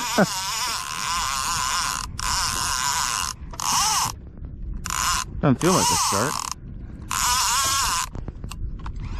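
A fishing reel's drag screams in loud bursts as line is pulled out.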